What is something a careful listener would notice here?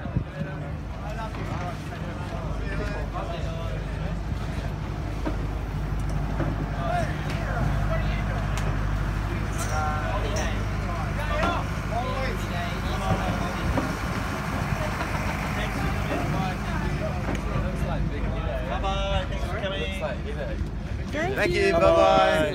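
A boat engine idles with a steady low rumble.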